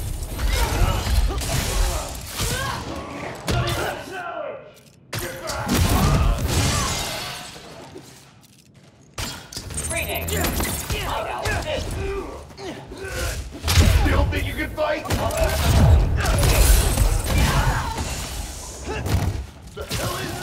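Heavy punches and kicks land with loud thuds and whooshes.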